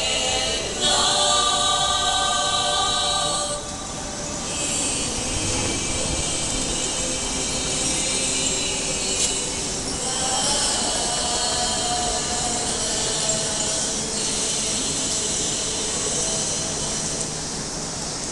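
Music plays through loudspeakers outdoors.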